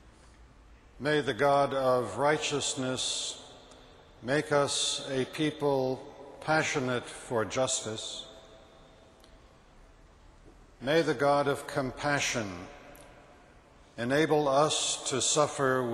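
Another elderly man reads out slowly and solemnly through a microphone in a large echoing hall.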